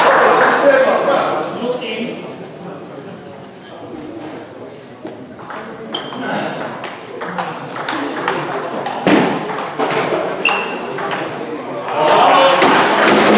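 A crowd claps and murmurs in a large echoing hall.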